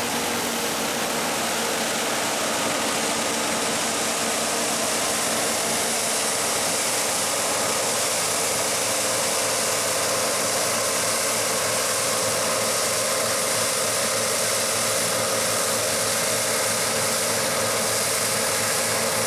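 A combine harvester engine drones and whirs steadily nearby.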